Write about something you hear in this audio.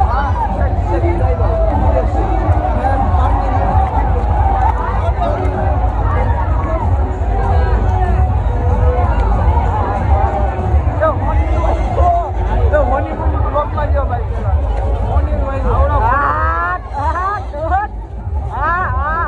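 A crowd of men and children chatter and call out nearby outdoors.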